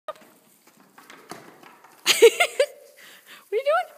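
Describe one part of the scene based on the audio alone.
Goat hooves clatter on a wooden board.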